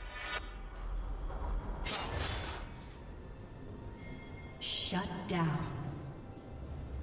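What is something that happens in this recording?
Magic spells whoosh and crackle in a fantasy game battle.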